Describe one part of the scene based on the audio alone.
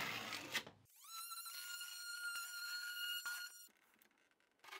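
A power drill whirs briefly.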